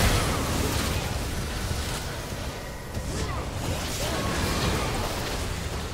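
Game spell effects whoosh and crackle in a fast fight.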